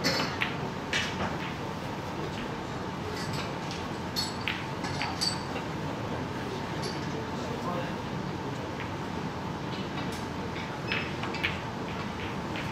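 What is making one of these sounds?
Billiard balls knock together with short clacks.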